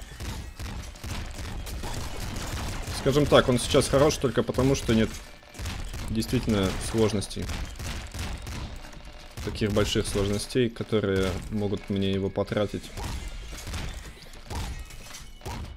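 Game gunfire and explosions pop and crackle steadily.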